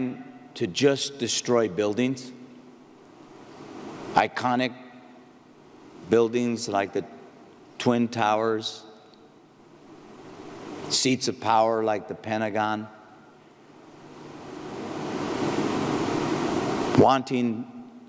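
A man speaks slowly and firmly into a microphone in a large hall, pausing between phrases.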